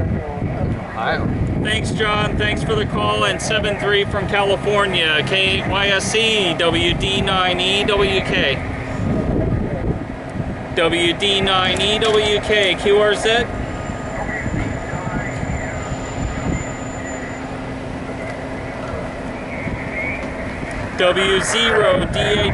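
A middle-aged man speaks steadily into a close microphone.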